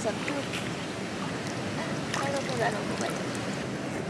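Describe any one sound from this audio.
A hand swishes and splashes in shallow water.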